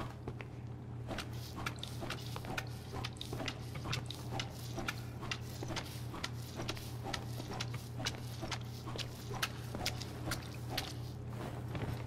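A mop scrubs a tiled floor with quick, repeated strokes.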